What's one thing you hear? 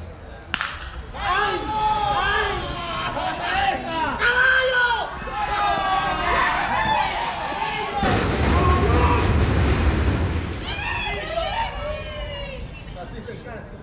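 Young men shout and cheer with excitement outdoors.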